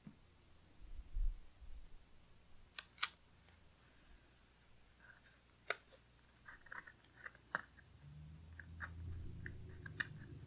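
Paper crinkles and taps softly as a sticker is peeled and pressed down.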